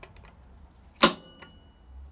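A circuit breaker switch snaps with a sharp click.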